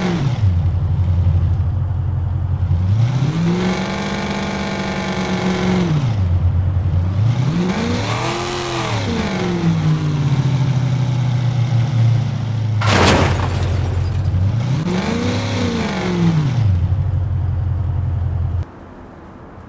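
A car engine hums and revs up and down repeatedly, then falls quiet.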